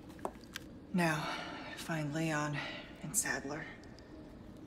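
A young woman speaks calmly and quietly.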